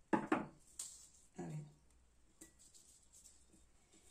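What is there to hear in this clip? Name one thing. Dry plant stems rustle as they are set into a jug.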